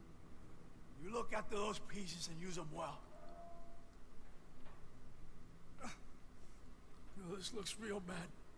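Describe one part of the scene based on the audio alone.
A man speaks calmly and closely, in a low voice.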